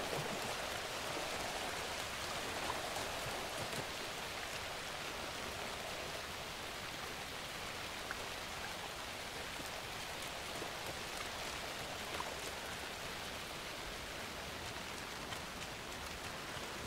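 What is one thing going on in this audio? Footsteps crunch slowly over leaves and undergrowth.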